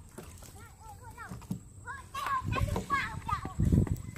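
Fish flap and thump against the bottom of a wooden boat.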